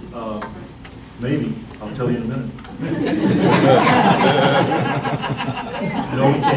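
A man speaks calmly to an audience in a room with a slight echo.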